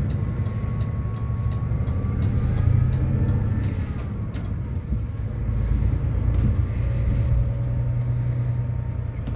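Rattles and clicks sound from inside a moving bus.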